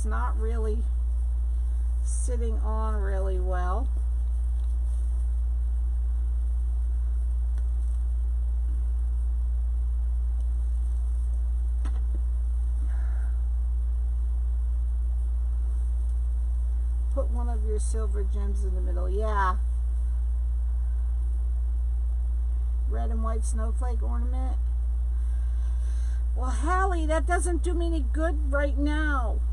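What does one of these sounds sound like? A ribbon bow rustles and crinkles as hands bend it.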